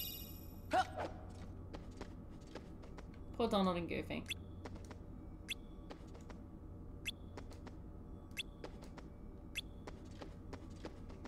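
Footsteps tap quickly and lightly on a hard floor.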